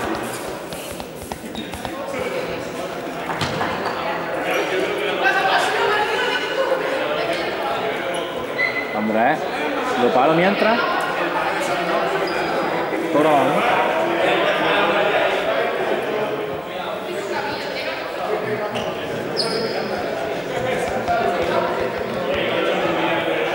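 Children and young people chatter and shout throughout a large echoing hall.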